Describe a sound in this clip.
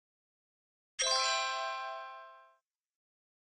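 A bright jingle chimes in celebration.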